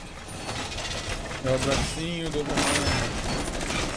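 Metal clanks and rattles as a wall is reinforced.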